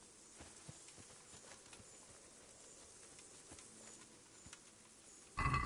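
Footsteps swish softly through grass.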